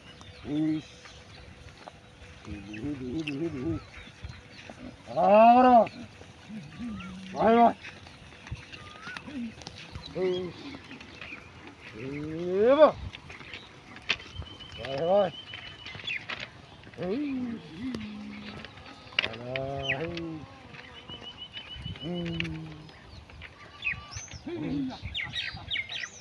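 Buffaloes grunt and low close by.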